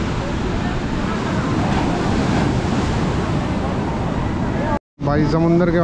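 Waves surge and wash noisily up onto a sandy shore.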